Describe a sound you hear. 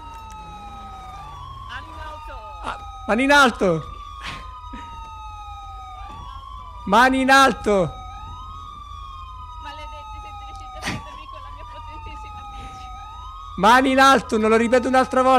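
A police siren wails steadily nearby.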